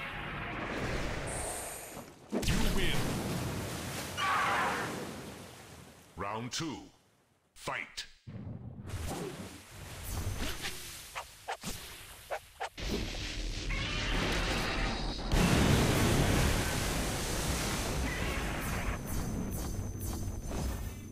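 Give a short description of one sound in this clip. Energy blasts crackle and boom in a video game.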